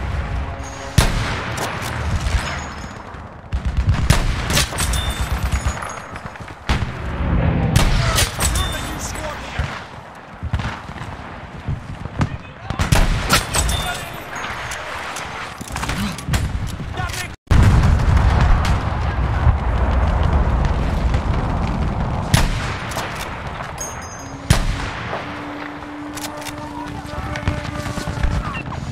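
Explosions rumble and boom in the distance.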